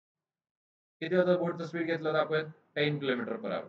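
A man lectures calmly into a close microphone.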